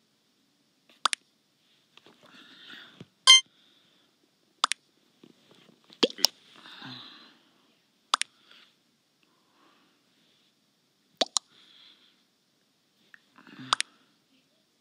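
Short electronic game chimes sound several times as votes are cast.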